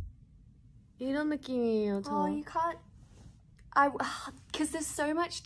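A young woman talks with animation close to a phone microphone.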